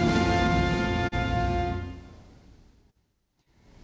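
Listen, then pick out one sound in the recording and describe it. A brass band plays a lively tune, ringing in a large hall.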